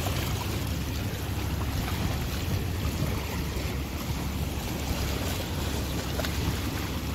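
Wind blows steadily outdoors.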